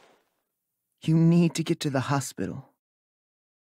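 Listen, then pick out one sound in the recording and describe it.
A teenage boy speaks hesitantly.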